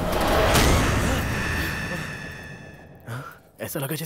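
A loud crash sounds and rings out.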